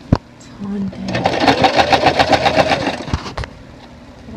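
A sewing machine stitches rapidly with a fast whirring rattle.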